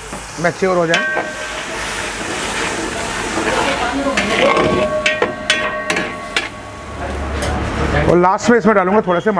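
Water hisses and sizzles loudly in a hot pan.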